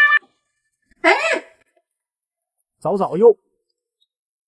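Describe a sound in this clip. A man speaks in short, lively bursts close by.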